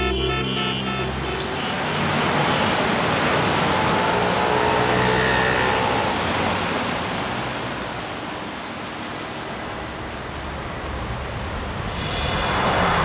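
Car engines hum and rumble in busy street traffic.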